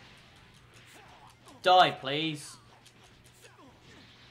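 Punches and energy blasts land with sharp impacts.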